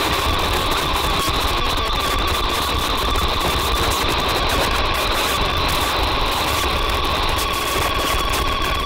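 Loud electronic music plays with a deep throbbing bass and steady high tones.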